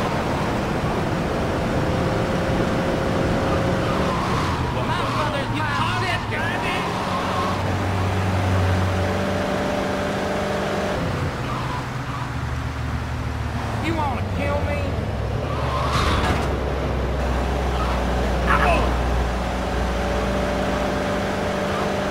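A car engine hums as the car drives along.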